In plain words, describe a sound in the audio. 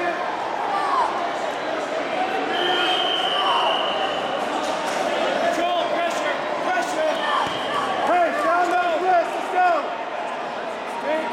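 Wrestlers scuffle and thump on a padded mat.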